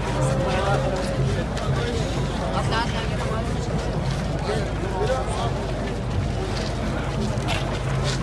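Men nearby talk loudly over the crowd.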